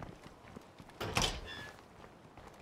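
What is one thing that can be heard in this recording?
A metal door swings open.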